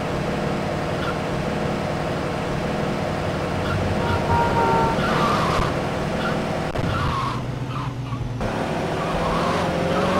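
A pickup truck engine drones steadily as it drives along a road.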